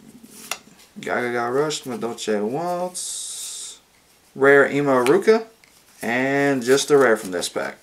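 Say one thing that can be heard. Playing cards rustle and slide against each other in someone's hands.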